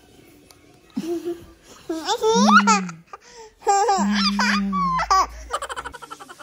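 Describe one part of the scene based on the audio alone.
A toddler laughs and squeals close by.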